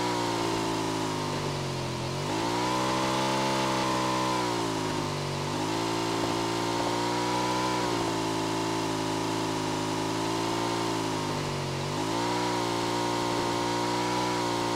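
A motorbike engine hums steadily, its pitch dipping and rising as it speeds up.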